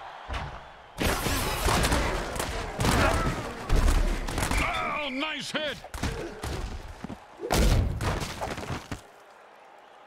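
Armoured players crash into each other with heavy thuds.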